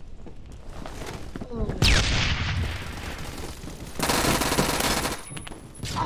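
Rapid gunshots fire in a video game.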